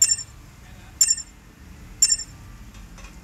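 Countdown beeps sound three times, a second apart.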